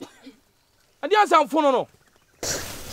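A young woman speaks briefly with irritation nearby.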